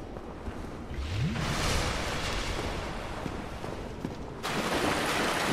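A heavy blade strikes with a loud rushing burst.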